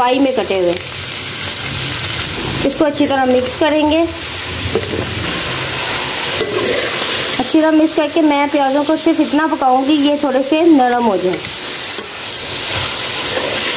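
Onions sizzle steadily in hot oil.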